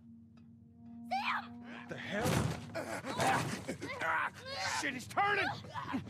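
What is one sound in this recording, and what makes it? Bodies scuffle and thud on a floor.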